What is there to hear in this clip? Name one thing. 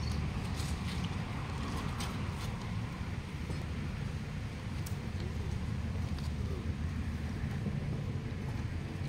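Shoes scrape against a stone wall as a man climbs down a rope.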